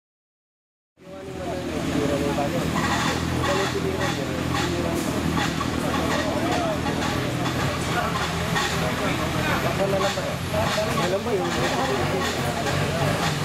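An off-road vehicle's engine idles steadily nearby.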